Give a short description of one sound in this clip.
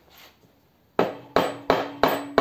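A hammer strikes a heavy metal engine block with ringing clangs.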